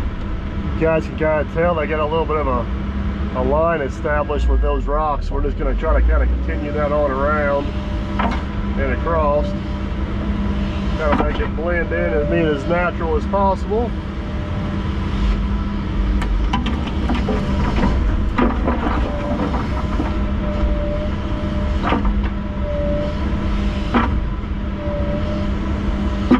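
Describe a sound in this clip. An excavator bucket scrapes and knocks against dirt and rocks.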